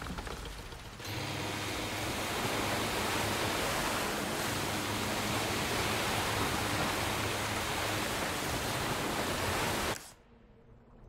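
Water splashes and rushes past a speeding boat.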